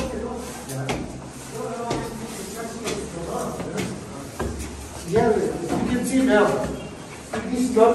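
Footsteps climb stairs.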